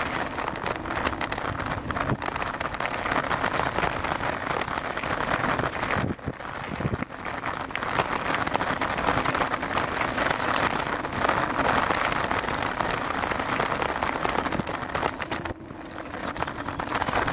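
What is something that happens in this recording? Bicycle tyres rattle and crunch over a rough dirt path.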